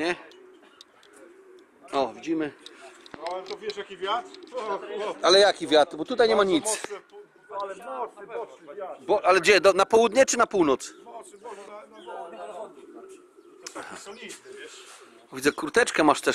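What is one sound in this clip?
Several men talk and laugh loudly together close by, outdoors.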